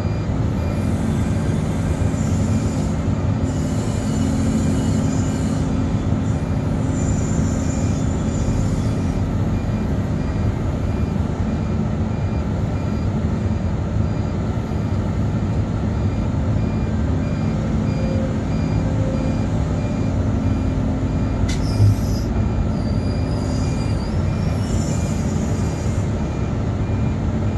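A diesel engine rumbles steadily close by, heard from inside a cab.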